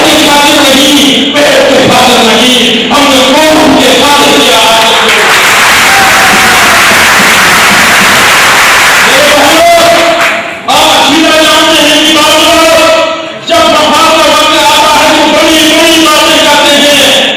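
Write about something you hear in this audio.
A middle-aged man speaks forcefully into a microphone, his voice carrying through loudspeakers.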